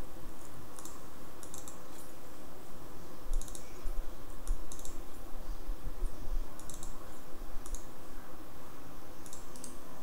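Short electronic clicks and chimes sound as items are picked from a menu.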